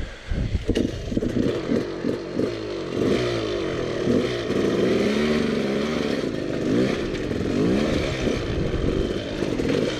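Tyres crunch and clatter over loose rocks.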